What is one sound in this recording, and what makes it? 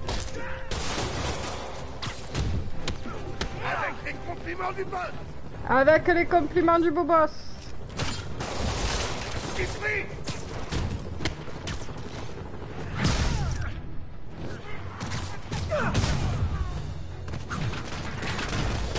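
A woman speaks into a microphone, close and lively.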